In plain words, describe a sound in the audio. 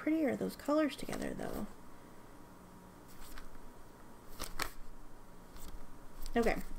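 Paper pages rustle as they are flipped quickly.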